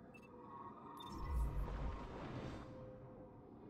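A loud whooshing burst rings out.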